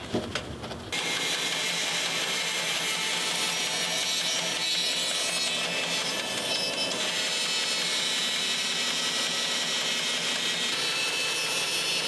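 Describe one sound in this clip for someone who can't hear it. A band saw whirs steadily as it cuts through a boot.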